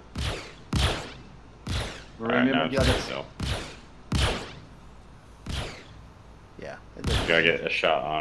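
Energy guns fire in sharp, evenly spaced blasts.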